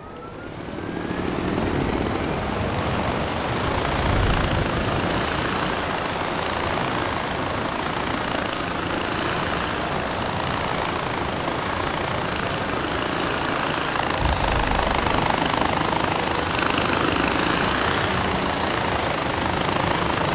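Wind roars past steadily.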